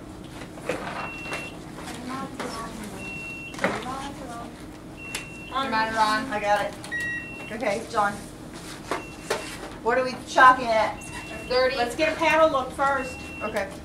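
A medical monitor beeps at a steady pace.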